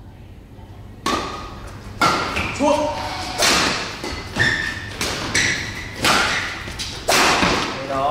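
Rackets smack a shuttlecock back and forth in an echoing hall.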